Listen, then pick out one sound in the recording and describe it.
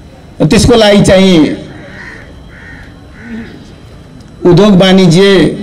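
A middle-aged man gives a speech through a microphone and loudspeakers, pausing between phrases.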